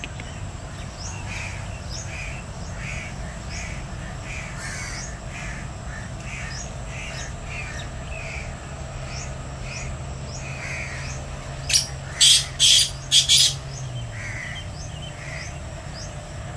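A small bird chirps repeatedly nearby.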